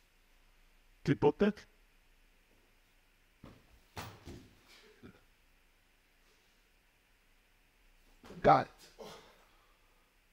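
A body thumps heavily onto a floor a few times.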